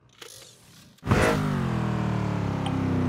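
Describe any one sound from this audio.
A racing car engine roars loudly at high speed.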